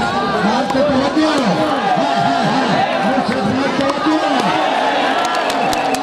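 A man chants rapidly and repeatedly.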